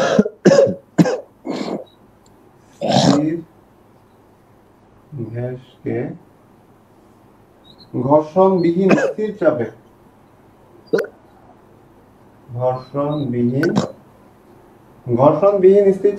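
A man lectures in short phrases, heard through an online call.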